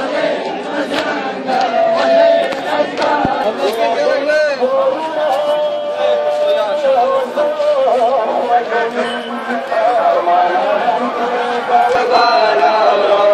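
A man's voice chants through a loudspeaker.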